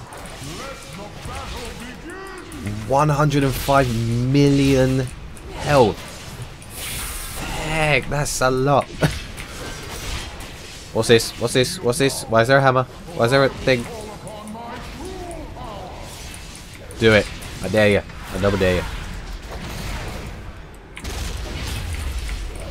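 Blows and spell effects clash in a fantasy battle.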